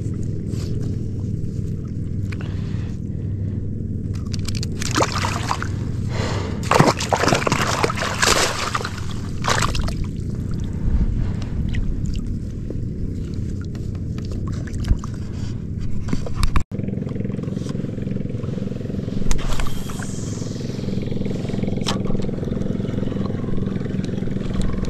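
A small boat motor hums steadily.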